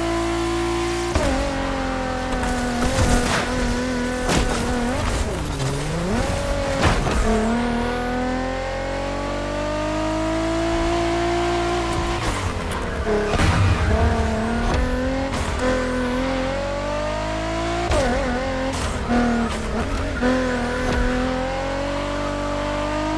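A race car engine roars, revving up and down through the gears.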